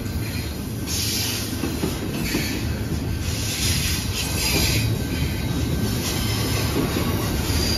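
A freight train rumbles past close by with a deep steady roar.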